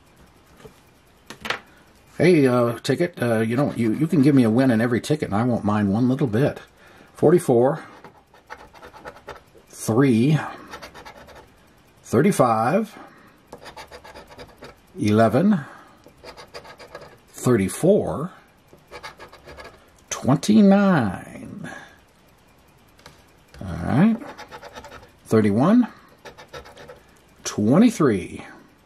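A coin scrapes and scratches across a card.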